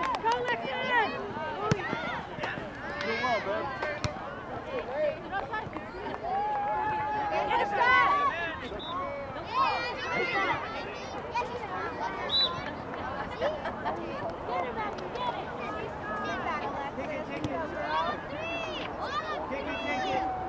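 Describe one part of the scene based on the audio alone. Girls shout and call out to each other outdoors.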